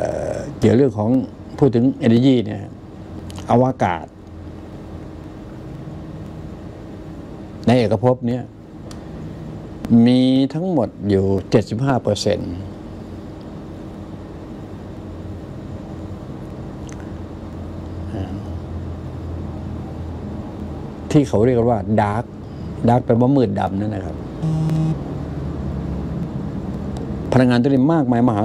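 An elderly man speaks slowly and thoughtfully into a close microphone, with long pauses.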